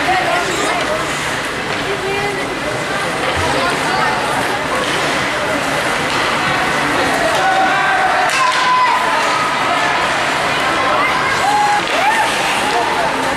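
Ice skates scrape and hiss across ice.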